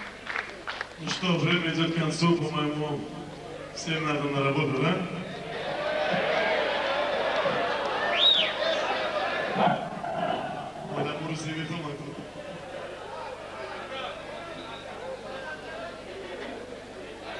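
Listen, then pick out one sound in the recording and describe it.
An electric guitar plays a melody.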